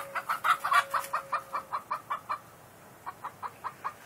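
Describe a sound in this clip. A chicken clucks nearby.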